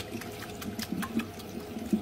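Water sprays from a shower head onto wet hair.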